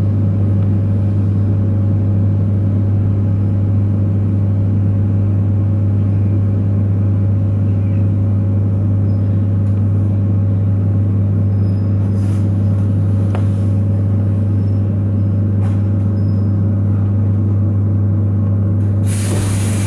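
A train's engine hums with a steady low drone.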